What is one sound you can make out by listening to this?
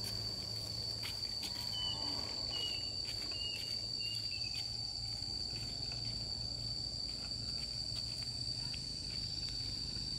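Footsteps scuff along a paved road.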